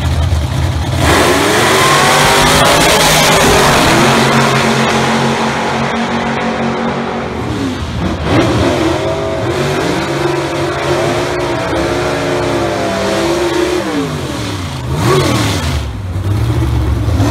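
A drag racing car engine roars loudly and revs up and down as the car launches down the track.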